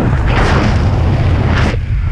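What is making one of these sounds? A parachute canopy flutters and flaps in the wind.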